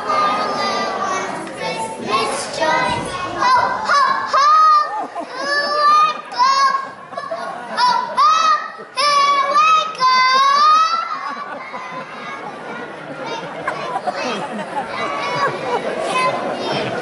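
Young children sing together.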